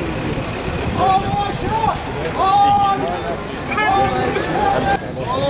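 A large crowd chants loudly in unison.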